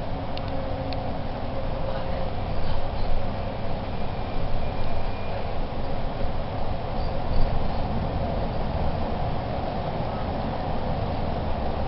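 A bus engine drones steadily while driving.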